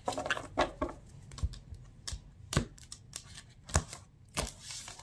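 Cards tap and slide on a wooden table.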